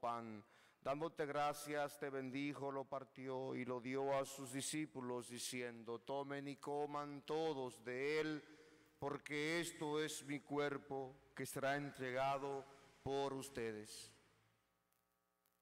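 A man speaks calmly into a microphone, heard through a loudspeaker in an echoing hall.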